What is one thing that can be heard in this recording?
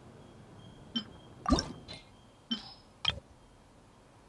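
Short menu clicks and chimes sound several times.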